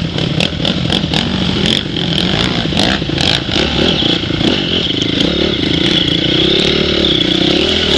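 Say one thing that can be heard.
A stream splashes and rushes over rocks.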